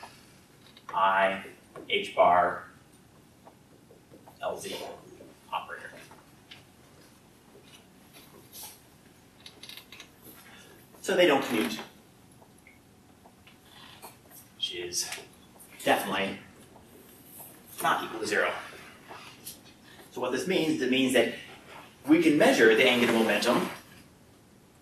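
A man speaks in short bursts, somewhat distant in an echoing room.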